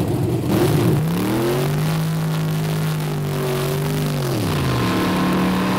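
A race car engine revs hard.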